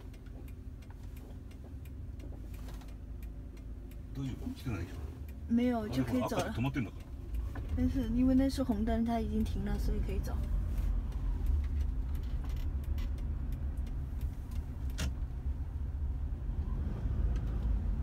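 A car engine hums steadily from inside the car, growing louder as the car drives on.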